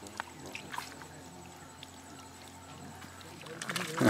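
Water splashes as a man lifts a net from a pond.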